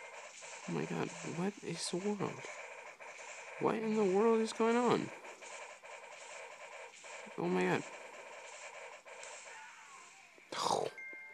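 Tinny game music and battle effects play from a small phone speaker.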